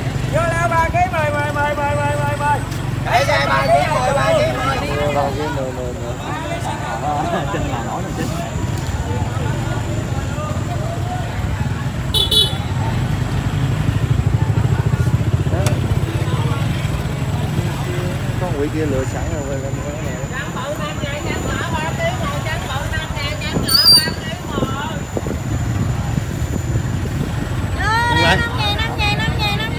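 A crowd of people chatters at tables outdoors.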